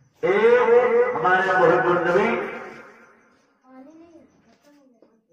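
An elderly man chants loudly into a microphone.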